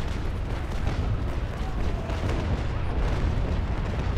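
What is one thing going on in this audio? Cannons boom across the water.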